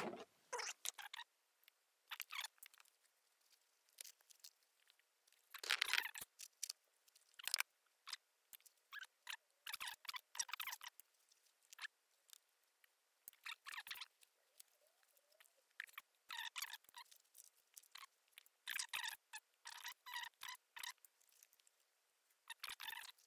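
Small clicks and taps come from fingers fiddling with a tiny object close by.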